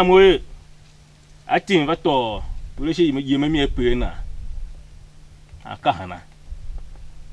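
A man speaks emotionally, close by.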